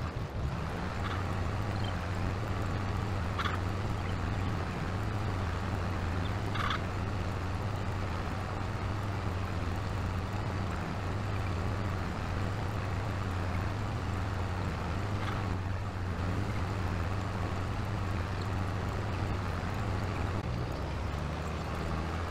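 A cultivator rattles and scrapes through soil.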